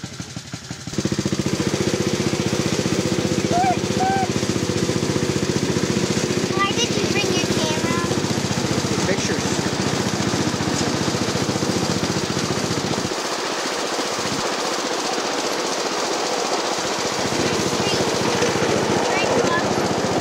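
A small train engine chugs steadily with a rapid beat.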